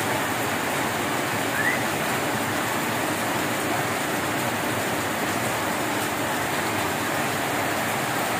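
Water gushes from a pipe and splashes onto the ground.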